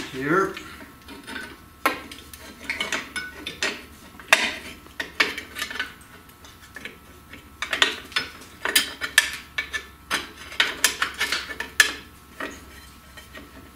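Metal brake parts clink and click as they are handled.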